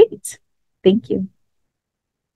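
A young woman speaks briefly through an online call.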